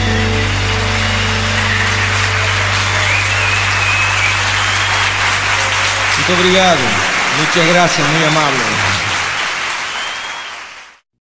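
A large audience applauds and cheers in an echoing hall.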